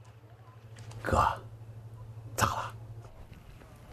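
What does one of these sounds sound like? A man calls out loudly nearby.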